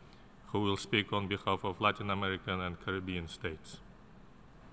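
A man speaks calmly into a microphone, heard through a loudspeaker in a large hall.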